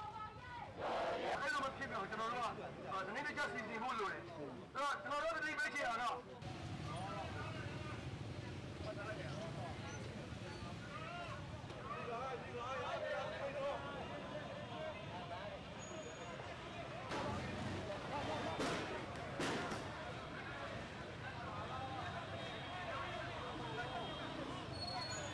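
A crowd of young men and women chatter and call out outdoors.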